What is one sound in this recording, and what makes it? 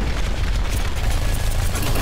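A video game explosion booms.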